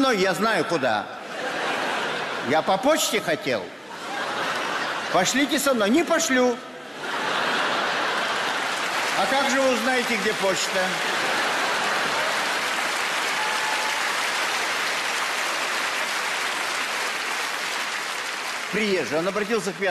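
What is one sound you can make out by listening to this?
An elderly man reads out with expression into a microphone.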